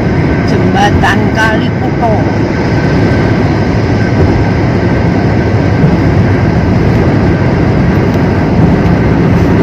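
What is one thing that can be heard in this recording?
A car drives at speed on a highway, its engine and tyres rumbling steadily.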